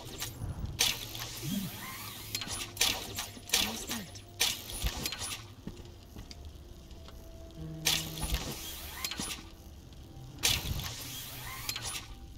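A grappling line whooshes through the air.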